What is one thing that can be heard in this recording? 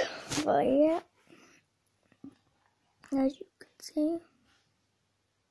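A young girl talks close to a phone microphone in short bursts.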